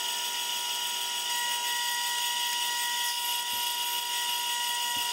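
A lathe motor whines steadily.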